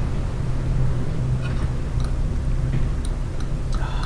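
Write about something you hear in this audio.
A tiny whisk taps and swirls against a small bowl.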